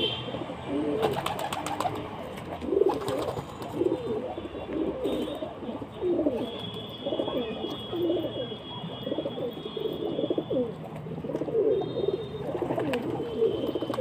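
Pigeon wings flap loudly as birds take off.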